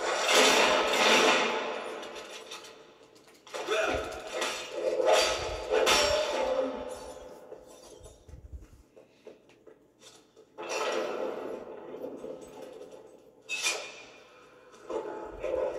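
Video game sound effects and music play loudly from a television speaker in bursts.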